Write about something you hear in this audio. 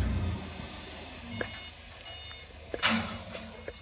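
A forklift engine hums nearby.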